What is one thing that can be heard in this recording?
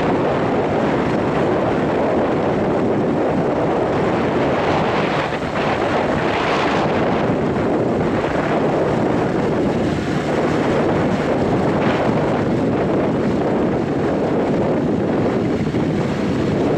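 A harvester machine rattles and clatters steadily.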